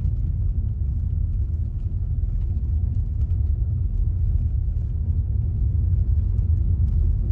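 A car engine rumbles steadily as it drives.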